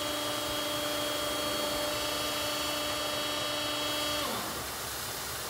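A hydraulic motor whines steadily, then winds down.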